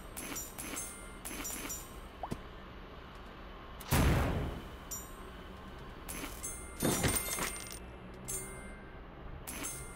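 Bright game chimes ring out as coins are collected.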